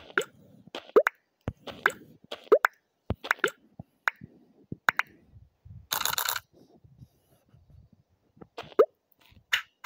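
Game pieces click and pop as hexagon tiles stack.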